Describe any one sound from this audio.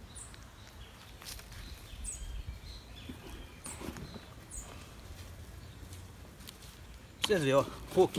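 Hands scrape and scoop loose soil.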